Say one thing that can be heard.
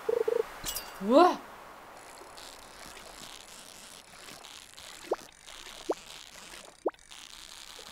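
A video game plays short rising sound effects.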